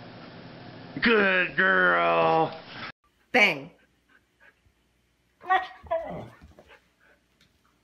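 A dog whines and howls close by.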